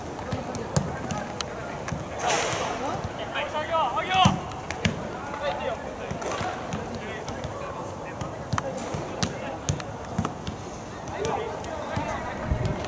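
Players shout to each other across an outdoor field.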